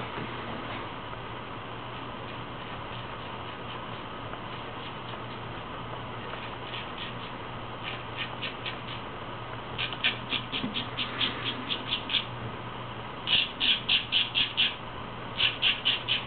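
A razor scrapes across stubble in short, rapid strokes, close by.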